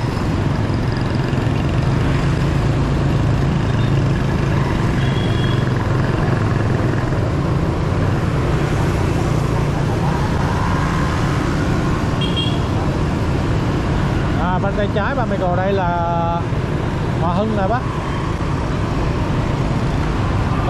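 Wind rushes past in a steady roar.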